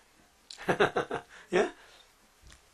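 An elderly man laughs heartily into a microphone.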